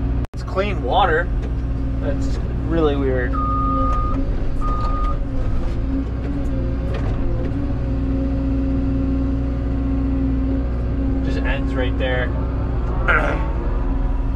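Metal clanks and debris scrapes as an excavator bucket digs.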